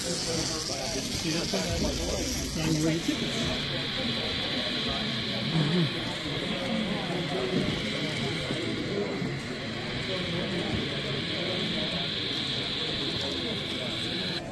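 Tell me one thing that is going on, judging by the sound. A crowd of people chatters indoors.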